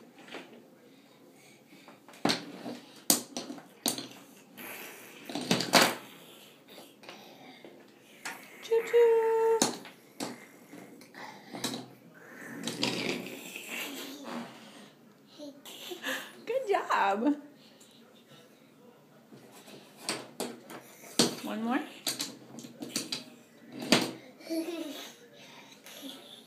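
Wooden toy trains clack and knock on a wooden track.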